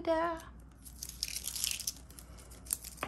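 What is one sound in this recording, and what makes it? A paper sticker is peeled off with a soft rustle.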